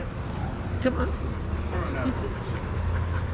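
A dog growls playfully up close.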